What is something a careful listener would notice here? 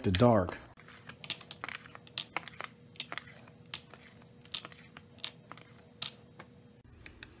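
Wooden pencils click and tap against each other as they are laid in a row.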